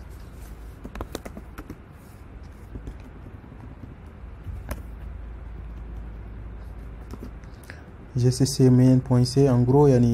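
Keys on a keyboard click as someone types.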